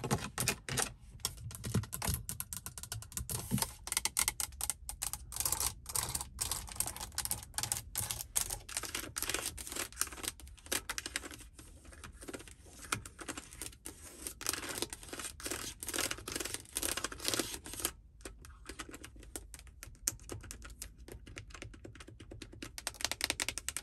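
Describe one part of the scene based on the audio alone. Long fingernails tap and click rapidly on hard plastic, close up.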